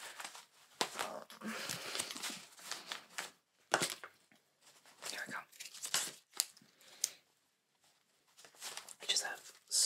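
Rubber gloves rustle and crinkle close by.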